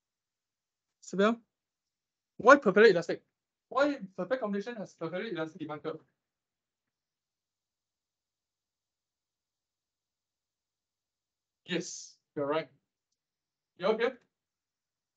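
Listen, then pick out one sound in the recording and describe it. A young man speaks calmly through an online call, in short bursts with pauses.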